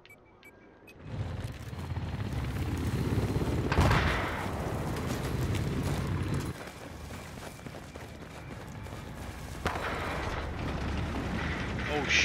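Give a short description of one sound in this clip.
Low rumbling game noise plays steadily.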